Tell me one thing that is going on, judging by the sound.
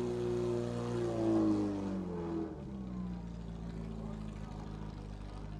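A portable fire pump engine roars at high revs.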